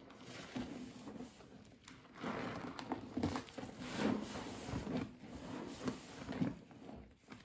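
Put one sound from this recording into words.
Gloved hands squish and squelch through thick soapy foam.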